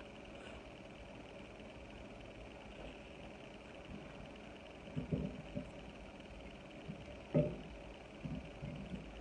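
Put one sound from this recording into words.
Fingers pick at food on a plate with soft clicks.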